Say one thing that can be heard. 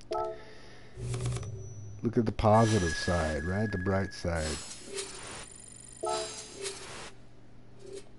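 Quick electronic tones tally up points in a rapid run.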